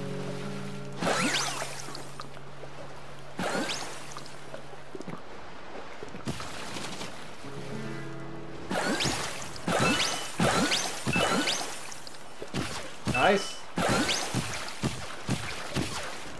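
Quick sliding chimes and whooshes of game sound effects ring out in bursts.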